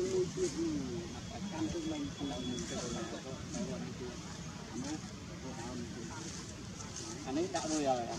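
Leaves and twigs rustle as a monkey shifts on a branch.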